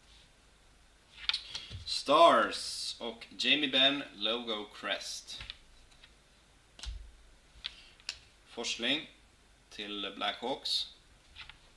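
Trading cards slide and rustle between fingers.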